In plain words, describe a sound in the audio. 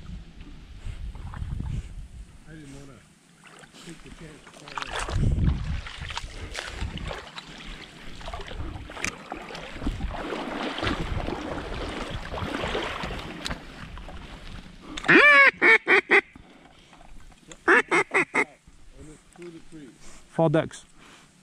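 A dog splashes as it swims through water.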